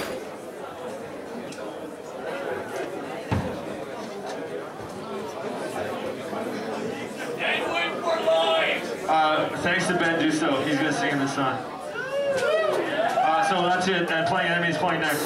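A rock band plays loudly through amplifiers.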